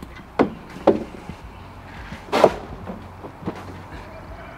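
A man knocks and thuds plastic buckets about nearby.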